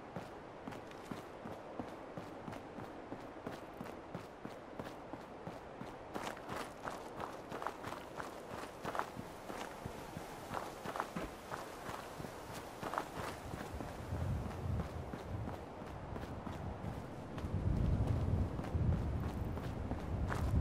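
Footsteps crunch steadily on gravel and dry ground.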